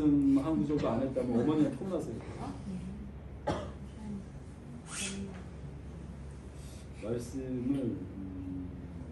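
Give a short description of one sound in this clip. A middle-aged man talks nearby in a lively, expressive voice.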